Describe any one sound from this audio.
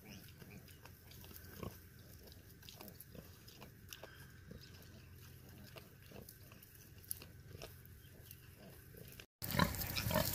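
A sow roots and snuffles in dry grass and leaves.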